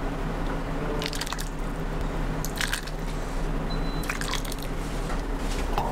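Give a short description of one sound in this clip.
A ladle clinks against a pot.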